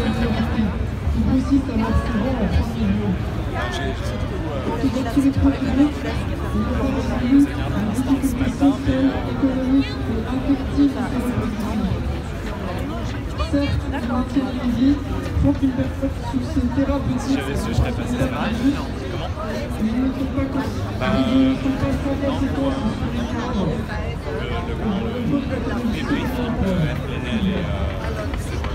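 A man speaks loudly and steadily through a loudspeaker to a crowd outdoors.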